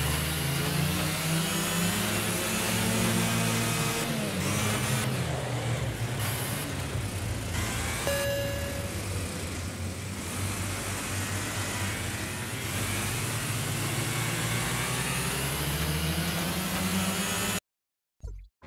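Kart engines buzz loudly at high revs, rising and falling as they race.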